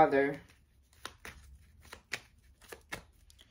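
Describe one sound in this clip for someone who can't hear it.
Playing cards are shuffled, with soft flicking and tapping.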